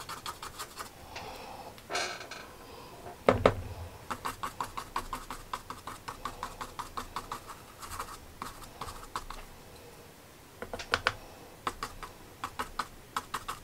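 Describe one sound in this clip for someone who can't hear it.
A paintbrush taps and dabs quickly on paper.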